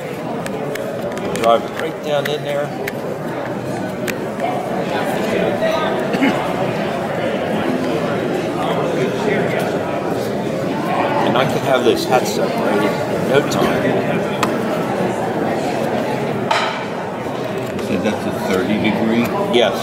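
A knife scrapes and shaves wood.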